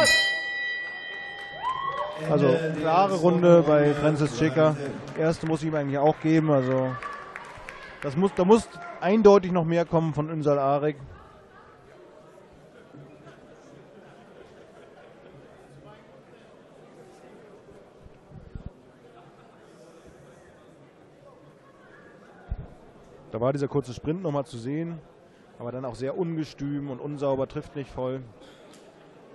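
A crowd murmurs in a large hall.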